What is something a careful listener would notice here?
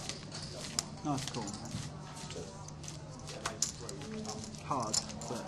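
Poker chips click together as they are stacked.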